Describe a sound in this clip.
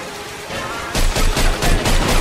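A submachine gun fires a rapid, loud burst.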